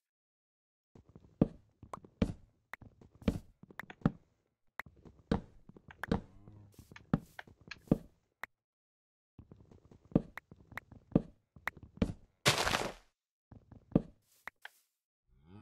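Wood is chopped with quick, repeated knocks.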